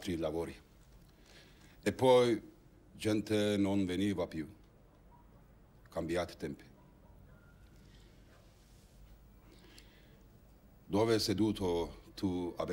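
An older man speaks calmly and slowly, close by.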